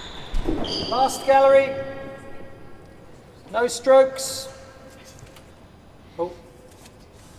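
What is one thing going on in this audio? A racket strikes a ball with sharp knocks that ring through an echoing hall.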